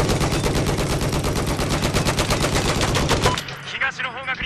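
A heavy machine gun fires in a rapid, steady burst.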